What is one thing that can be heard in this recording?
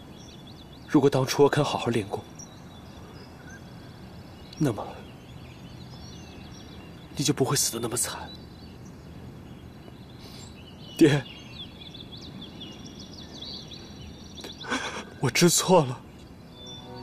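A man speaks in short, troubled phrases close by.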